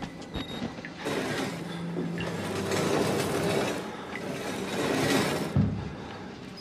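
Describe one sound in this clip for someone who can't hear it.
A heavy metal cabinet scrapes across a concrete floor.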